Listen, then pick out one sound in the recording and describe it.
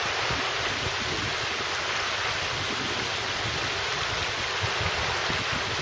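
A shallow river rushes steadily over flat rocks.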